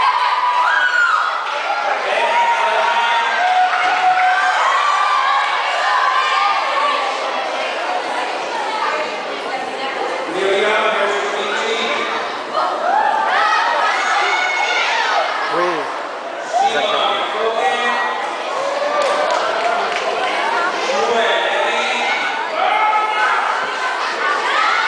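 A group of women sing together through microphones.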